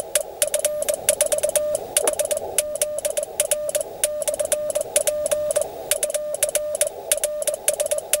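A radio beeps out a steady tone in quick Morse code bursts.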